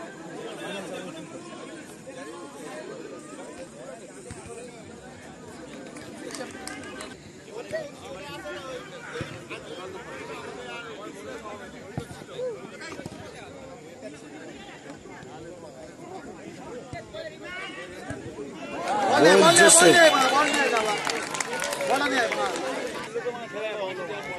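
A crowd of spectators chatters outdoors throughout.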